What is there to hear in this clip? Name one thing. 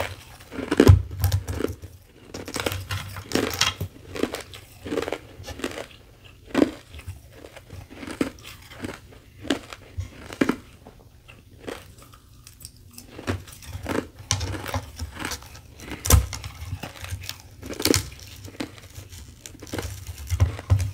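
Fingers crunch and squeak against crushed ice, close up.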